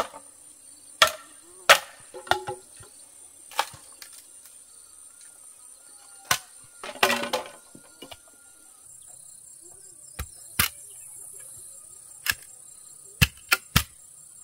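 A knife chops into bamboo with sharp knocks.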